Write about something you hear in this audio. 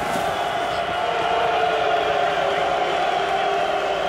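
A large crowd chants loudly in a stadium.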